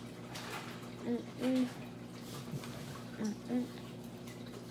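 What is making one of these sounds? A young woman hums briefly with her mouth closed.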